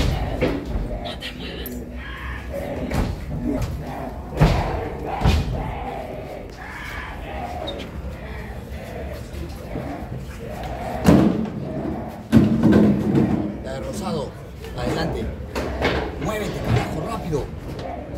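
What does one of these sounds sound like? Several young people talk and chatter nearby.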